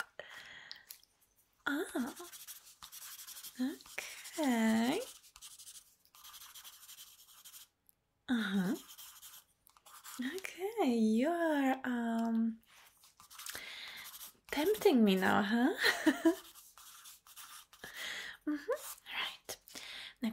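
A young woman speaks softly and closely into a microphone, with pauses.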